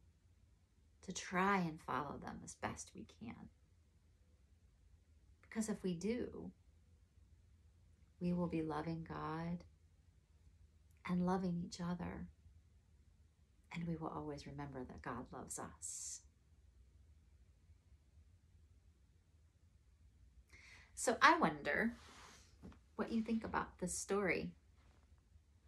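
A young woman speaks calmly and clearly, close by, in short phrases with pauses.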